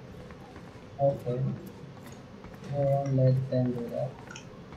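A second man answers calmly nearby.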